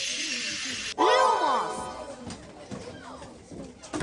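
A bright magical chime rings out and fades.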